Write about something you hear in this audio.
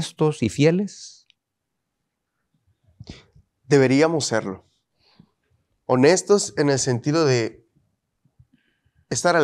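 A man speaks calmly through a microphone, in short phrases with pauses.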